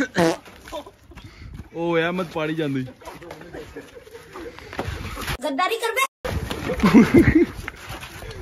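Young men shout and laugh excitedly close by.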